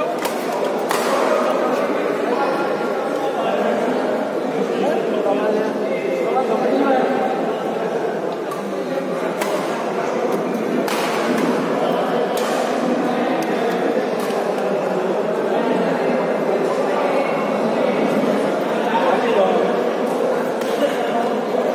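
Shuttlecocks are struck with sharp racket pops.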